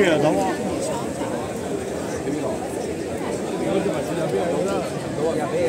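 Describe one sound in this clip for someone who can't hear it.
A bonfire roars and crackles.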